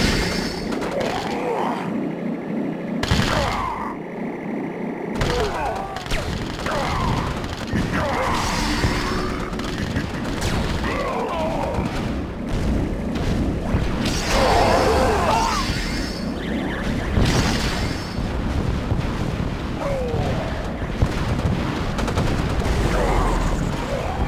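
Gunfire and explosions crackle in a battle between tanks and infantry.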